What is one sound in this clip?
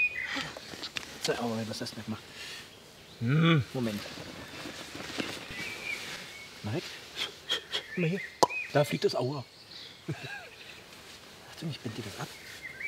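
A man speaks gently and reassuringly to a child nearby.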